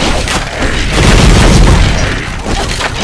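A fiery explosion booms with a deep rumble.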